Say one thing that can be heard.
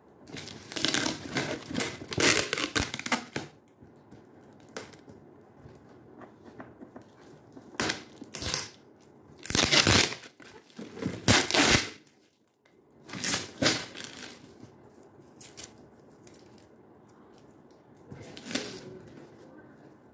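Cardboard rustles and scrapes under hands.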